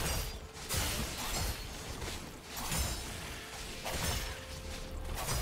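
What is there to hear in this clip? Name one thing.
Game spell effects crackle and whoosh during a fight.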